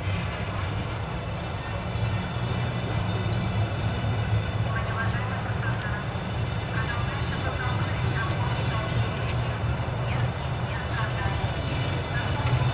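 A train rolls slowly past with a steady low rumble.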